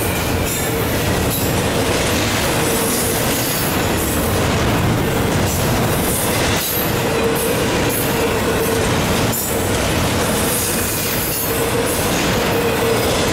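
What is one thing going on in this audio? Steel wheels squeal and clack on the rails.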